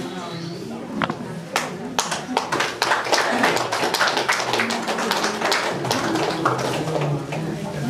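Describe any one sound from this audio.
A small group of people applaud indoors.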